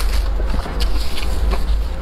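Paper crinkles as a napkin is pressed to a face.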